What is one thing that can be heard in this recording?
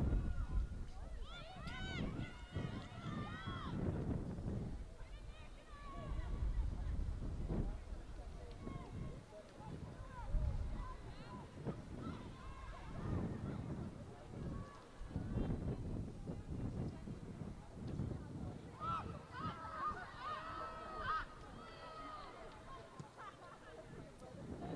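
Young women shout and call out to each other across an open outdoor field.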